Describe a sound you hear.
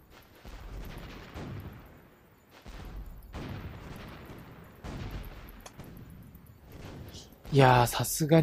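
Distant naval guns boom and rumble in bursts.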